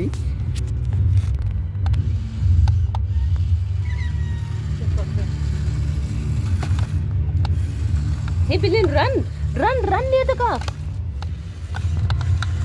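A small toy car's electric motor whirs as it drives along.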